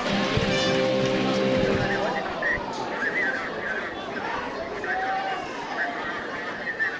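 A crowd roars and cheers in a large outdoor stadium.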